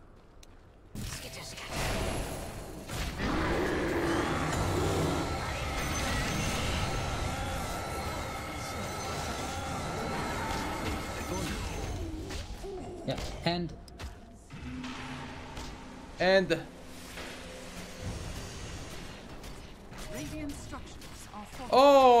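Game spells and attacks crackle and boom during a battle.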